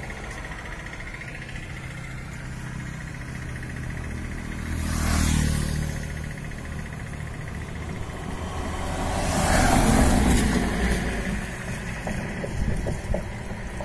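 Fuel pours and splashes into a metal tank.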